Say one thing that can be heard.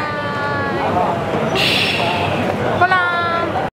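A young woman speaks a little farther off.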